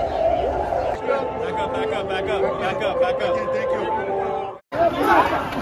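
A male police officer shouts orders nearby.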